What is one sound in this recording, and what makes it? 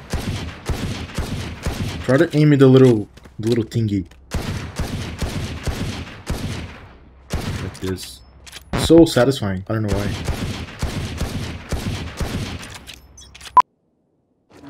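A pistol fires sharp gunshots in a video game.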